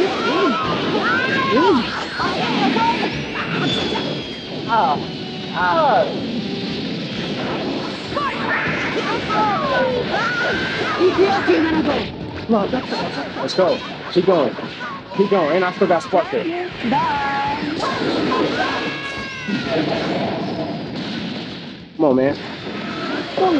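A young man talks excitedly into a microphone, close by.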